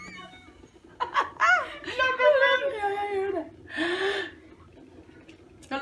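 Two women laugh together close by.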